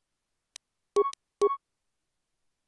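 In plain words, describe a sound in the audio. Short electronic menu beeps sound.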